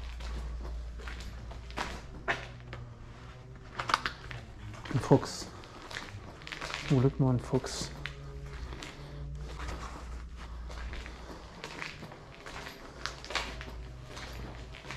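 Footsteps crunch over debris in a large, echoing space.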